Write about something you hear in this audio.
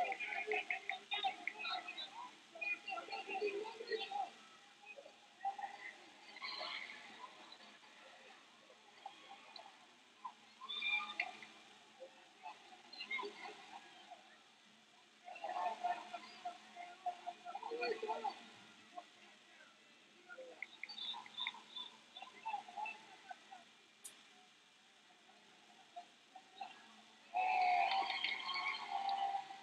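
A crowd of spectators shouts and calls out in a large echoing hall.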